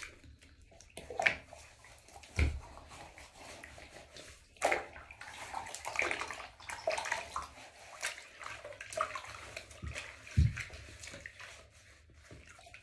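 A woman talks quietly close by, in a small echoing room.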